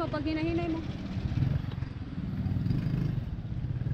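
A motorcycle drives past.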